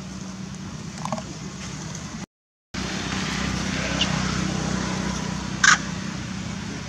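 A baby macaque gives a short, high squeal.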